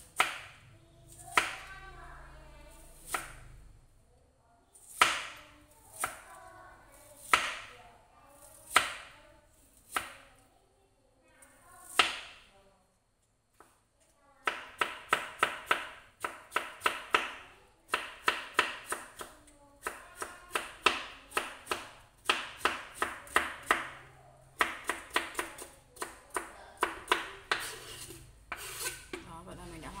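A knife knocks against a cutting board, slowly at first and then in quick chops.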